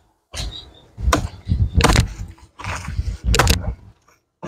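A blade chops into plant stems with sharp thuds.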